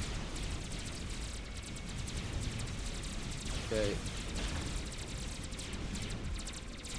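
Laser weapons zap and crackle in rapid bursts.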